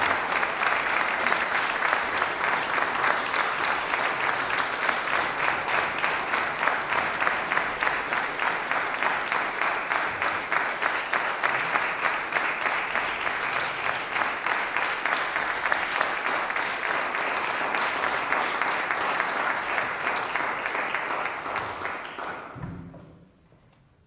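An audience applauds loudly in a large hall and the clapping fades away.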